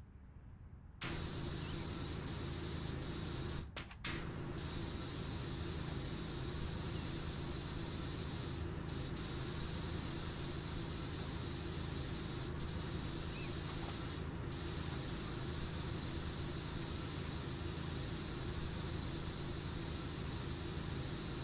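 A pressure washer sprays a steady, hissing jet of water.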